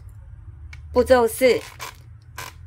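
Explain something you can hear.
Rubber balloons squeak sharply.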